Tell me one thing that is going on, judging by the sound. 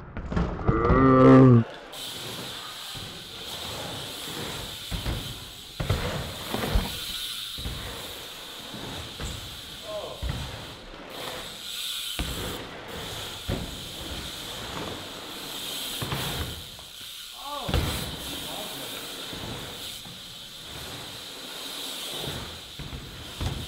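Bike tyres roll and hum on a concrete ramp.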